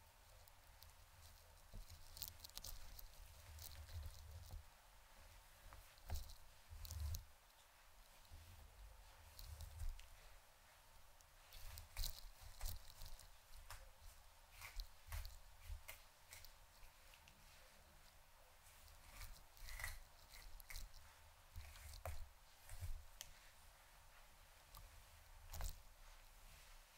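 Small clicks and taps come from handling a comb.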